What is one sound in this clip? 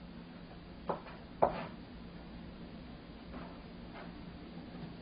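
A knife taps on a cutting board as food is chopped.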